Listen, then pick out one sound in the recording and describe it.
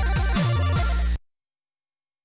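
Electronic video game music plays loudly and cuts off abruptly.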